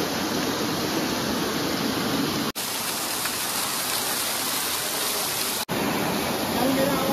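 Water splashes and rushes loudly over rocks.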